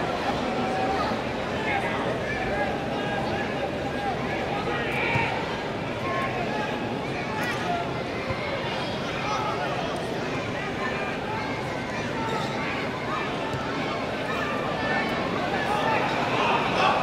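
A large stadium crowd murmurs and chatters steadily in a wide open space.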